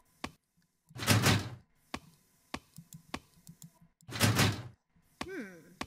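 A locked door handle rattles sharply.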